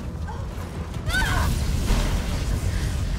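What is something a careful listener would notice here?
An explosion bursts with a sudden loud roar.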